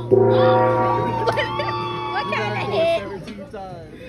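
A gong is struck and rings out.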